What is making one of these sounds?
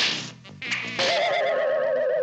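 A wooden violin smashes against the floor with a loud crack.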